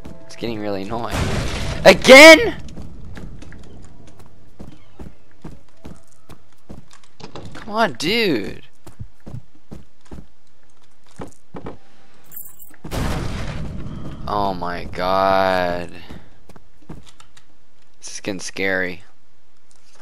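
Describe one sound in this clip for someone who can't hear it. A young man talks with animation and exclaims into a close microphone.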